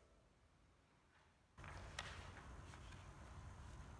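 A page of a book turns with a soft rustle.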